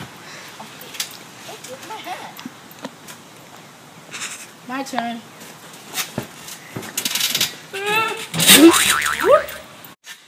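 A trampoline mat thumps and creaks as boys bounce and fall on it.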